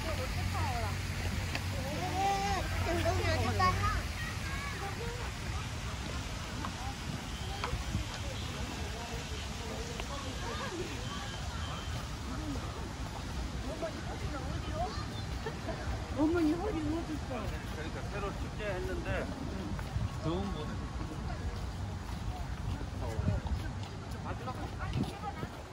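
Men and women chat nearby outdoors, with voices coming and going.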